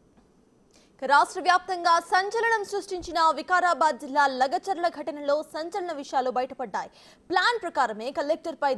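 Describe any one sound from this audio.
A young woman speaks clearly and briskly into a microphone.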